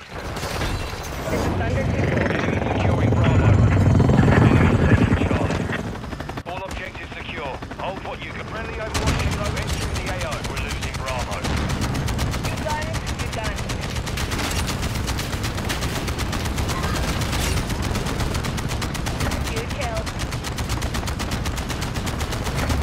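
A helicopter's rotor thumps and whirs steadily.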